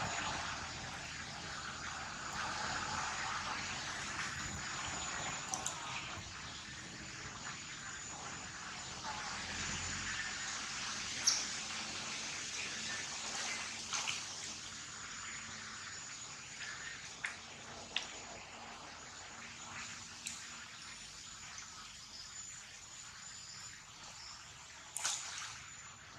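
Leaves rustle as monkeys climb through the branches.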